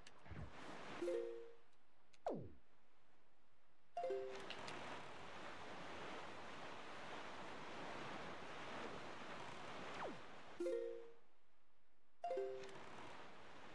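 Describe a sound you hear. Short chimes ring as menus open and close.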